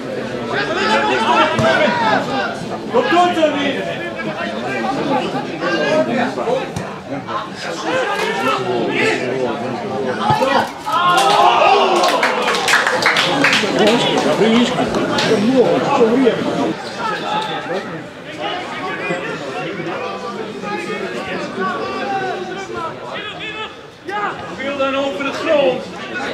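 Older men talk and call out close by, outdoors.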